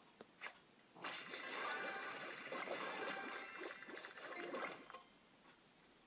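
Cheerful chiming game sound effects ring out as candies burst.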